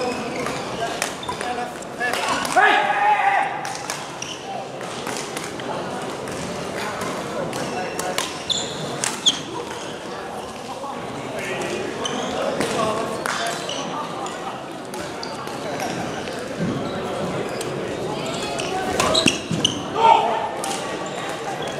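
Rackets strike a shuttlecock with light pops in a large echoing hall.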